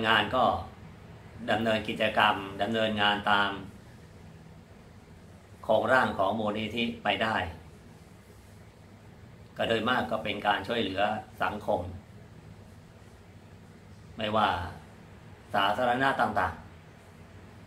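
An elderly man speaks calmly and slowly, close to a microphone, with long pauses.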